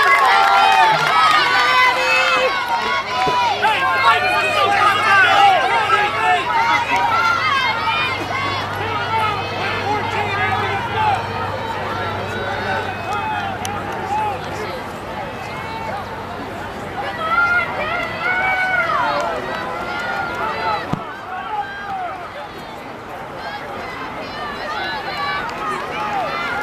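A crowd of young spectators cheers and shouts outdoors.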